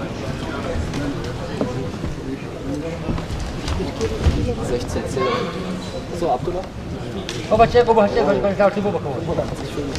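Wrestlers' feet thud and scuff on a mat.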